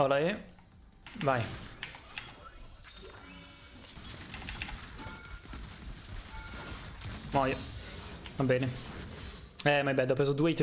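Video game spell and combat effects whoosh and crackle.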